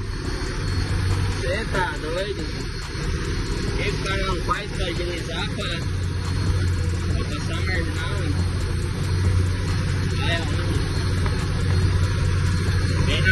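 A truck's diesel engine rumbles steadily.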